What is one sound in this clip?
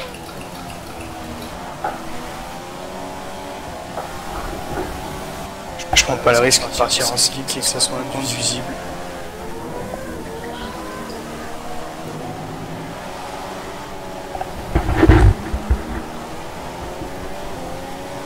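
A racing car engine whines steadily, rising and falling in pitch as gears change.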